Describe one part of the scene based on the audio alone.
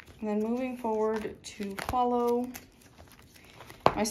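Binder pages flip over with a soft swish.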